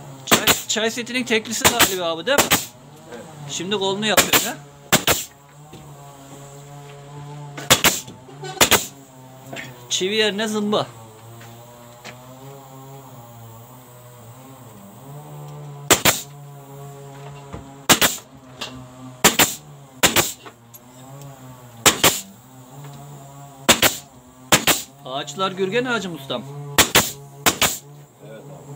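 A pneumatic nail gun fires nails into wood with sharp bangs.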